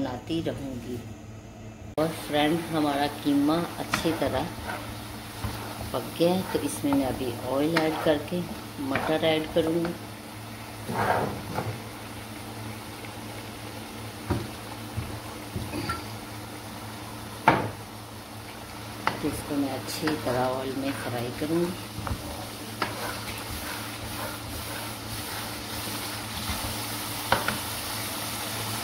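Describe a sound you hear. Food sizzles and bubbles in a hot pan.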